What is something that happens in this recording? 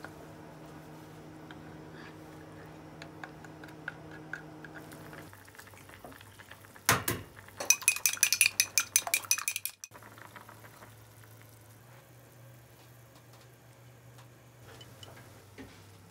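Broth bubbles and simmers in a pot.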